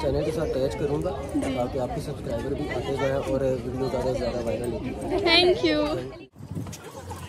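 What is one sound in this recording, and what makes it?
A young woman talks cheerfully and close up.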